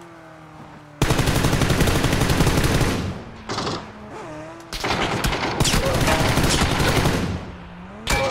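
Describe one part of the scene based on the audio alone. An automatic gun fires in rapid, loud bursts.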